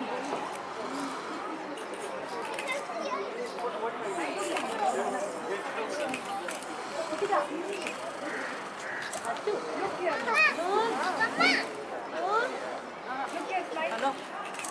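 Many young children chatter and call out together nearby.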